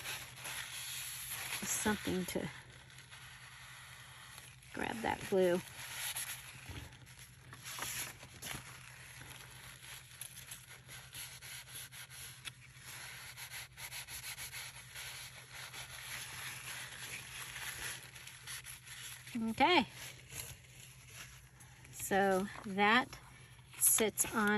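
Paper rustles and slides as it is handled and folded.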